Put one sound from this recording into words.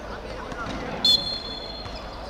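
A referee's whistle blows a short sharp blast.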